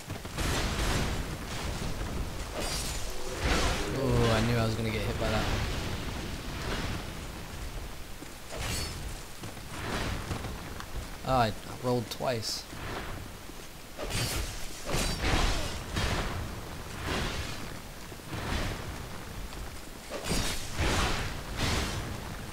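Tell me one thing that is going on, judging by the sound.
Heavy metal hammer blows thud against stone.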